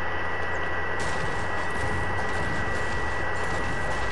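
A pickaxe strikes a tree trunk with repeated chopping knocks.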